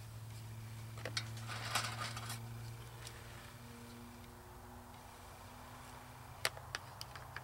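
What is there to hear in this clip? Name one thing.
Metal parts of a small stove clink and scrape as they are handled.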